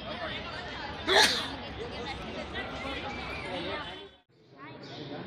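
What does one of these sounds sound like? A crowd of people murmurs nearby.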